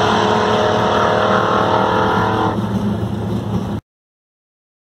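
An engine roars loudly close by, then drops to a lower rumble.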